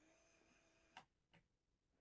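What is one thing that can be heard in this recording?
A button clicks softly.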